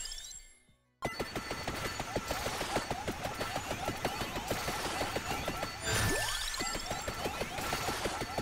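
Rapid electronic hit sounds patter and pop.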